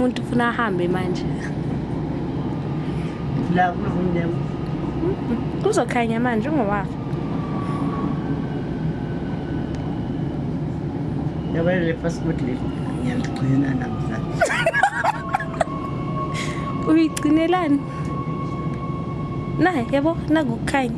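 An elderly woman speaks calmly and close by, in short bursts.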